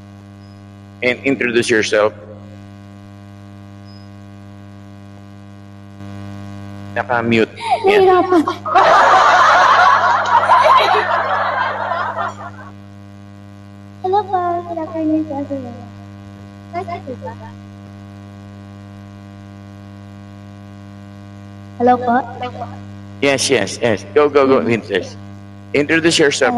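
A man speaks with animation into a microphone, heard over an online call.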